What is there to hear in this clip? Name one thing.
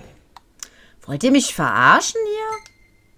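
A menu chimes with short bright tones.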